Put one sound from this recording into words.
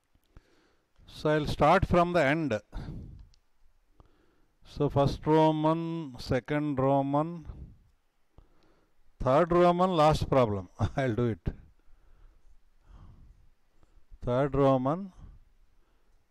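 A man speaks in short explaining phrases, heard through a microphone.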